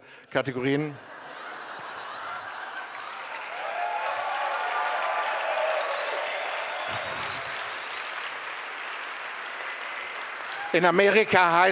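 A large audience laughs loudly.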